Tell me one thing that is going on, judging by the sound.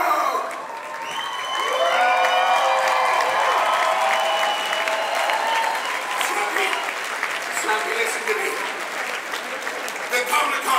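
A large audience cheers and applauds loudly.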